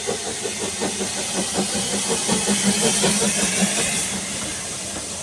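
A steam locomotive chuffs rhythmically as it pulls away.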